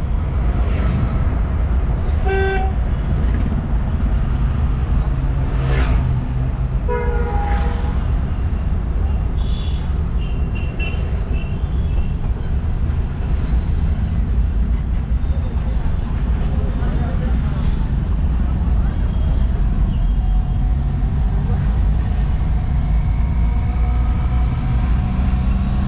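A car engine hums steadily with road rumble from inside the car.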